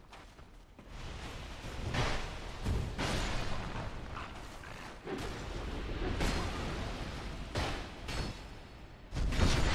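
A sword swings and strikes in a fight with clanging blows.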